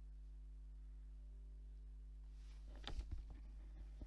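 A car's powered tailgate whirs as it closes.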